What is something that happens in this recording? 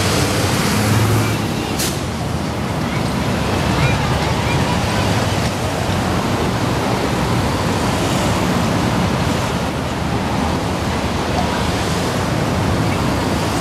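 Cars drive past on a road nearby.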